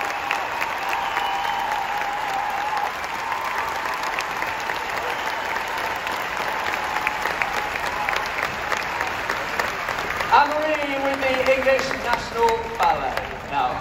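A large crowd cheers and chatters.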